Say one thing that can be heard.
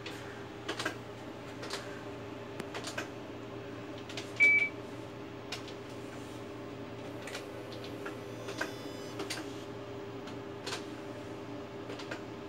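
An electronic machine hums steadily.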